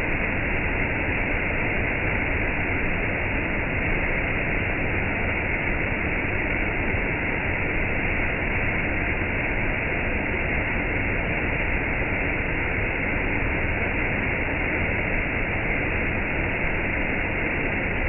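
A waterfall rushes and splashes steadily over rocks, heard close by.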